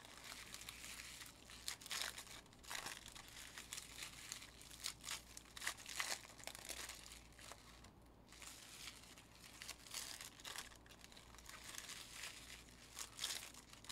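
Plastic wrappers crinkle and rustle as they are torn open.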